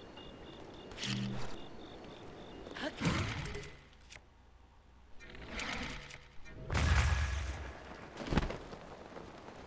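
Video game sound effects whoosh and thud.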